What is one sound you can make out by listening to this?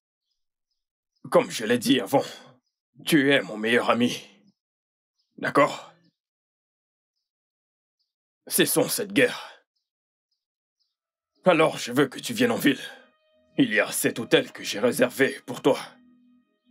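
A second man answers in a calm voice.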